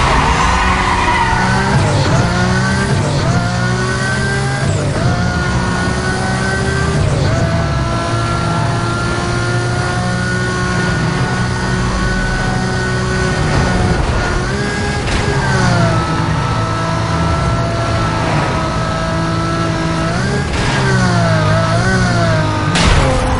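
A sports car engine accelerates hard, its pitch dropping at each gear shift.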